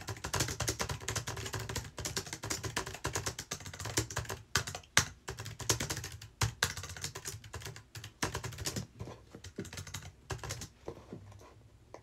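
Fingers tap quickly on a computer keyboard.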